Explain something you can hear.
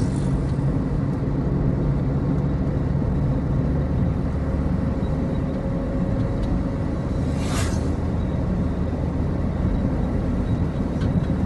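A car's engine hums and its tyres roll steadily over smooth pavement.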